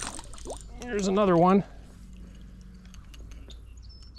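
A small fish splashes at the water's surface as it is pulled out.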